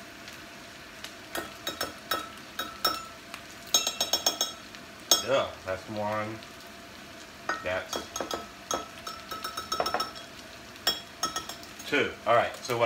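A fork clinks rapidly against a glass cup as it whisks.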